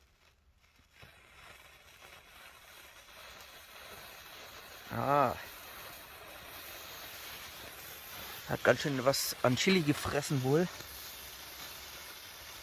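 A small firework burns with a soft, steady hiss.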